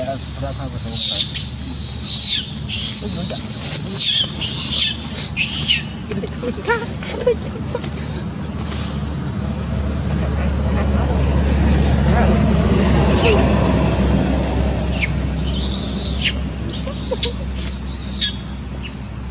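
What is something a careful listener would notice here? A baby monkey squeaks in short high cries.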